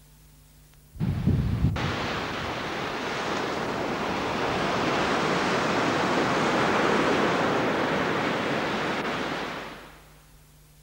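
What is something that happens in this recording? Waves wash onto a beach in a steady rush.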